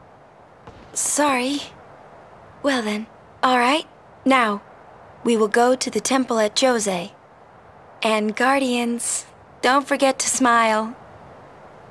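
A young woman speaks gently through a microphone.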